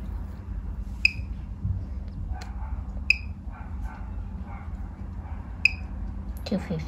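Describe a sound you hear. An electronic meter gives short, high beeps a few times.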